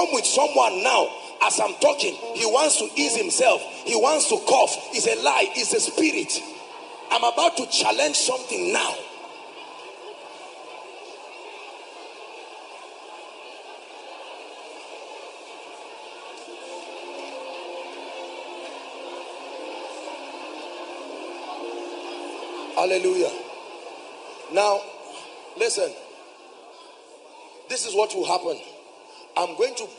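A man preaches forcefully into a microphone, with pauses.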